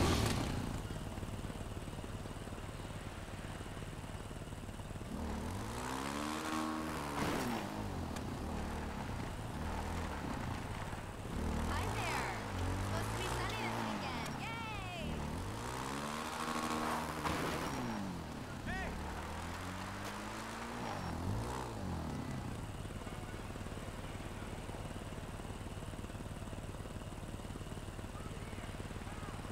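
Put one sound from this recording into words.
A quad bike engine idles with a low steady rumble.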